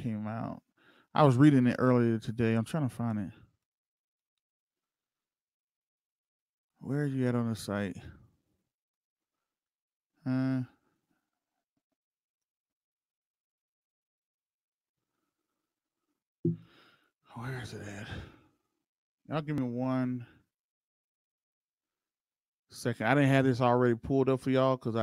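A man speaks close into a microphone, with long pauses between phrases.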